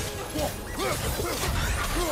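A fiery blade whooshes through the air.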